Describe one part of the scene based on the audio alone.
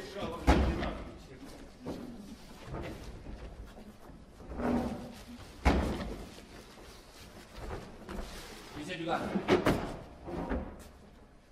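Footsteps thud on a wooden stage floor.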